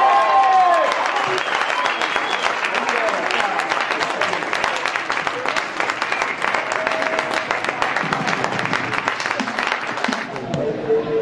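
Young women cheer and shout excitedly outdoors.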